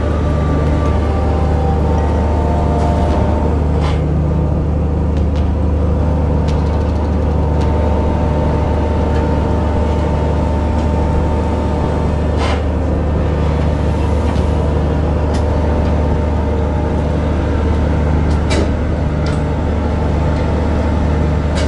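A ship's engine hums steadily and deeply.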